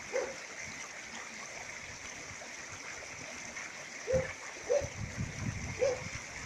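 A shallow stream rushes steadily over rocks.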